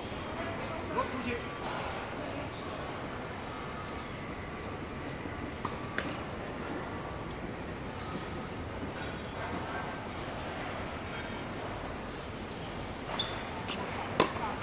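A tennis racket strikes a ball outdoors.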